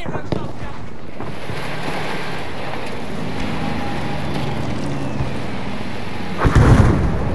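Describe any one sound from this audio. A vehicle engine rumbles steadily while driving over a rough track.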